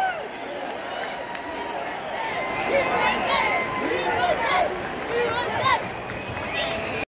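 A large crowd murmurs and chatters in an open-air stadium.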